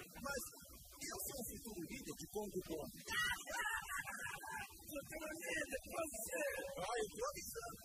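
A man speaks with animation in a cartoonish voice.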